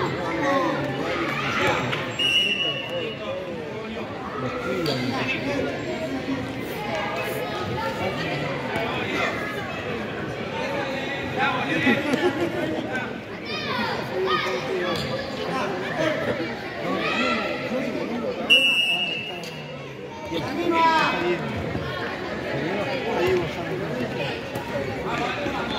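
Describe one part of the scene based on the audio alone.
A ball thuds as children kick it.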